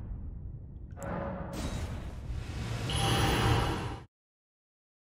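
A shimmering magical whoosh swells and then cuts off suddenly.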